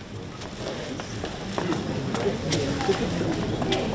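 Cellophane flower wrapping crinkles and rustles.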